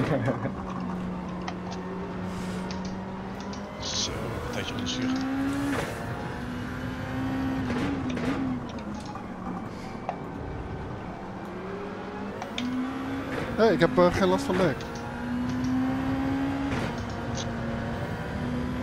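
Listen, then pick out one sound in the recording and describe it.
A race car engine revs up and down through gear changes.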